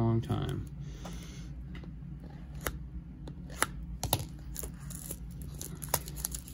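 Plastic wrap crinkles and crackles as it is torn open.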